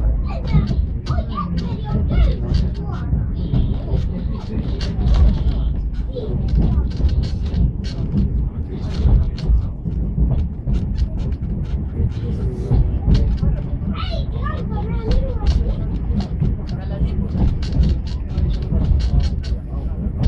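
Train wheels click and clatter over the rails.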